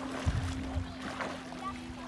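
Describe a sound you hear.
Water splashes as a child moves through it.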